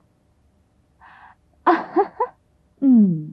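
A young woman laughs and speaks playfully nearby.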